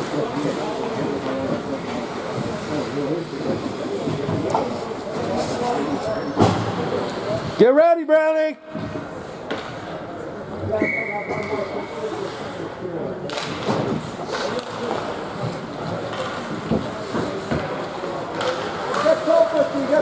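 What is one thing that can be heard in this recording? Skates scrape and swish on ice in a large echoing rink.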